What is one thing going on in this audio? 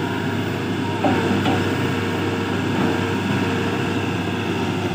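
Wet soil thuds as it is dumped from an excavator bucket.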